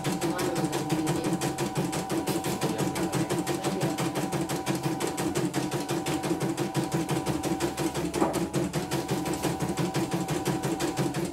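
An embroidery machine stitches with a fast, steady rattling hum.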